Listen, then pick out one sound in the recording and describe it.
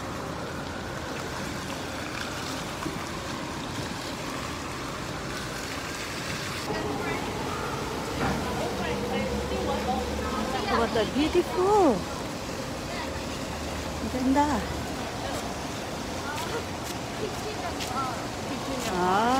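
Water jets splash steadily in a fountain.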